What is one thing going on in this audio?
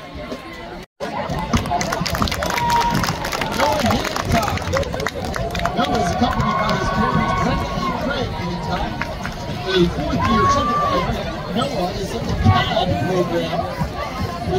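A crowd talks and cheers outdoors.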